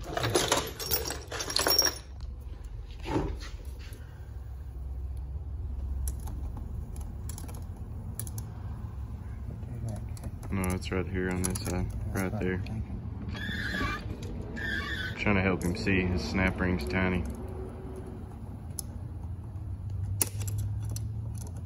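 Metal parts clink and scrape inside a gearbox housing.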